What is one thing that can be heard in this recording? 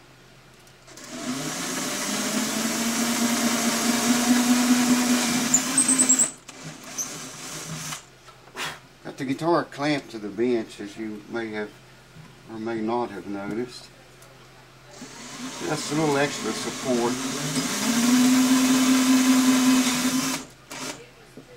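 A cordless drill whirs steadily, then stops.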